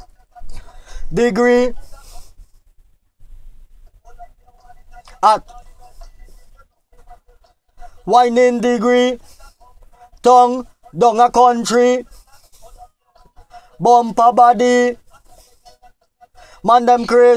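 A man sings into a close microphone in short phrases.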